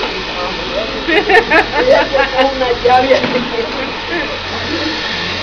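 Women laugh and chatter nearby.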